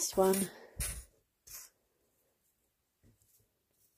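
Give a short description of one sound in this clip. A metal clip clicks down on a hard surface.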